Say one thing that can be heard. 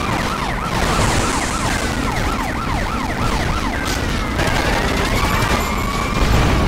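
A car bursts into flames with a roaring whoosh.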